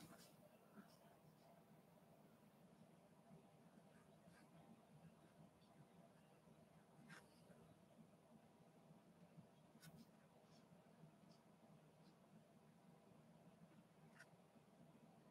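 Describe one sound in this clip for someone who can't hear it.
A paintbrush brushes softly on paper.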